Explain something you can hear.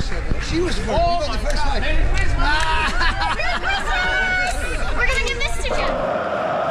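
A young girl shouts excitedly close by.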